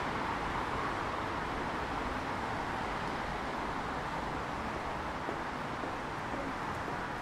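A crowd murmurs outdoors in the background.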